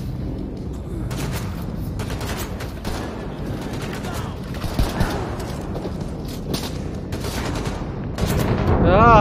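Rapid gunfire rattles and bangs.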